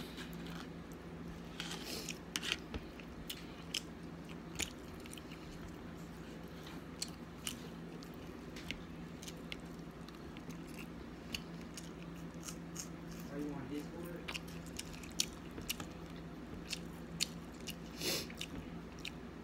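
A young woman chews and smacks her lips close by.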